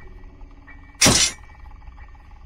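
A metal object drops onto a wooden floor with a sharp thud.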